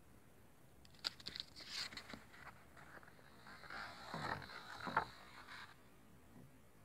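Paper rustles and crinkles as booklets are handled.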